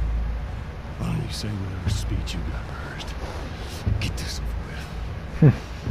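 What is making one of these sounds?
A young man speaks calmly close to a microphone.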